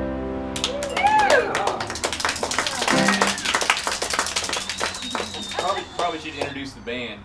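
Several men laugh and cheer loudly close by.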